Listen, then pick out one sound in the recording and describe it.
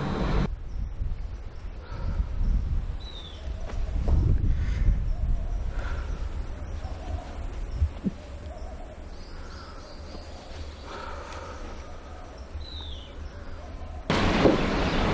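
A man talks on a phone outdoors, speaking with feeling.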